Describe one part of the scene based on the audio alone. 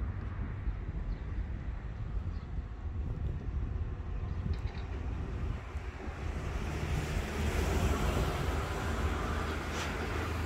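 Footsteps scuff on concrete.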